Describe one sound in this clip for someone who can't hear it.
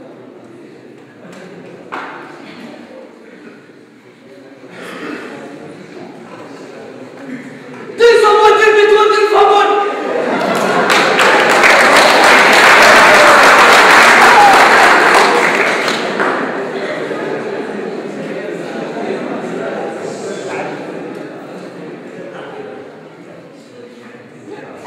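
A young man speaks through a microphone over loudspeakers in a large echoing hall.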